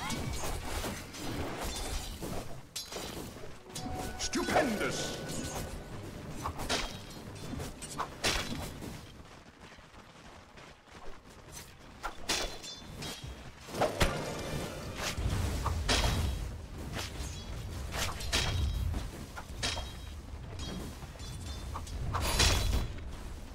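Game combat effects clash, zap and burst in quick succession.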